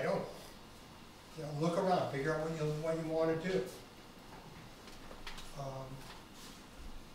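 A middle-aged man speaks calmly to a room, heard from a short distance.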